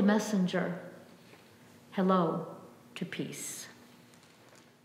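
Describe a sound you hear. A middle-aged woman speaks calmly through a face mask in an echoing room.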